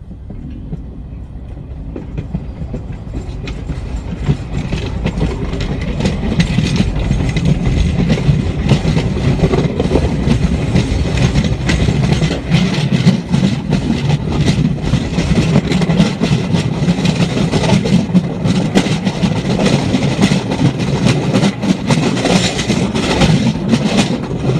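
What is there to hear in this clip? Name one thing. A vehicle's engine rumbles steadily, growing louder at first.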